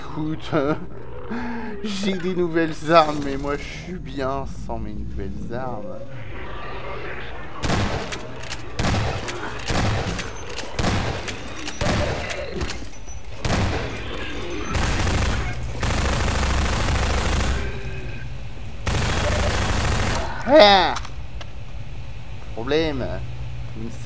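Zombies groan and moan.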